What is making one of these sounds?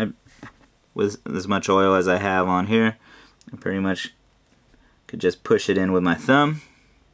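A man talks calmly and close by.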